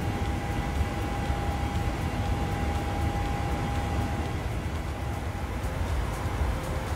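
A jet airliner's engines drone with a steady low rumble.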